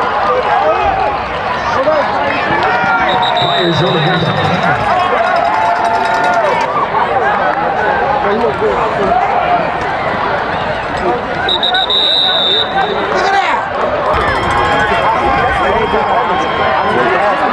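A large crowd cheers and shouts in an open stadium.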